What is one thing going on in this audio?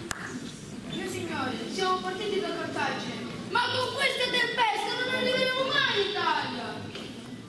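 A young boy speaks loudly on a stage, in an echoing hall.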